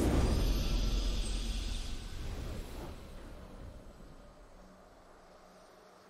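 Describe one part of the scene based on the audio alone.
A game's victory fanfare booms and fades.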